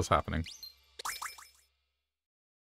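A bright chiming jingle plays briefly.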